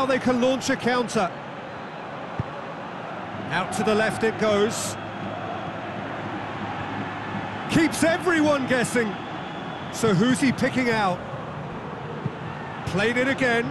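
A large stadium crowd murmurs steadily in the background.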